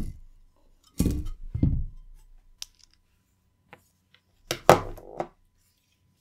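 Metal panels clatter as they are set down on a hard surface.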